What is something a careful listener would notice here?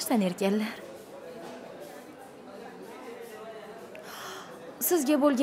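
A young woman speaks softly and emotionally close by.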